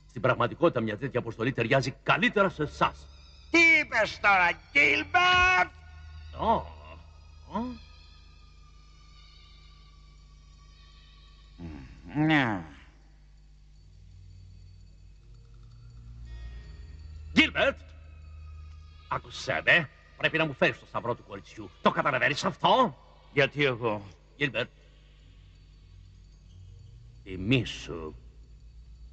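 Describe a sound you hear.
A young man speaks tensely and close by.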